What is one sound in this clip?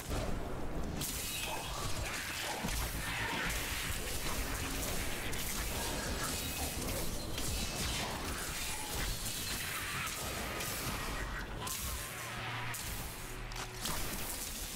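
Electric spells crackle and zap in a game.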